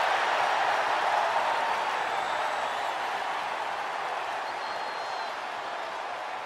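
A large crowd cheers loudly in a big arena and slowly quiets down.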